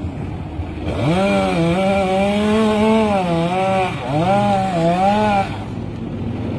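A chainsaw revs loudly, cutting into wood.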